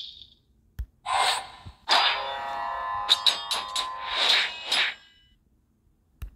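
Game sound effects clash and chime as a spell is cast.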